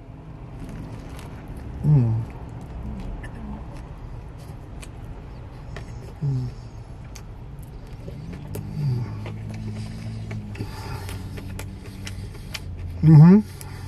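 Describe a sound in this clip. A man chews and smacks his lips loudly while eating.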